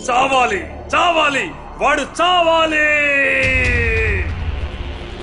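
A man shouts angrily close by.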